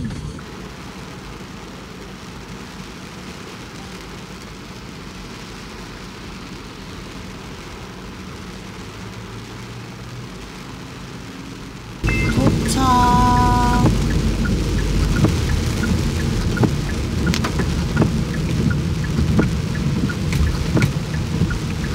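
Rain patters steadily on a car windscreen.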